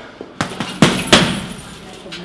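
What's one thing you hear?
Gloved punches thud against a heavy punching bag.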